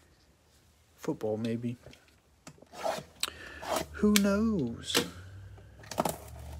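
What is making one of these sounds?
Gloved hands grip and turn a plastic-wrapped cardboard box, with crinkling and tapping sounds.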